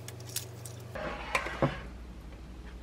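An egg plops softly into liquid.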